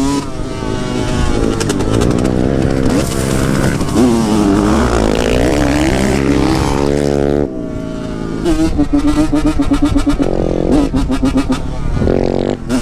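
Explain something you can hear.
A dirt bike engine revs loudly up close, rising and falling.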